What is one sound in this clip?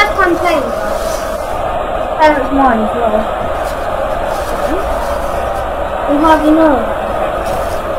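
A boy talks close to a microphone with animation.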